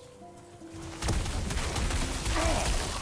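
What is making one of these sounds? A stream of fire roars and crackles.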